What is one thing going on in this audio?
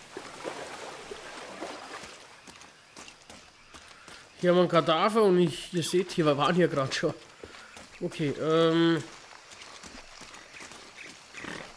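Footsteps crunch quickly over dirt and leaves.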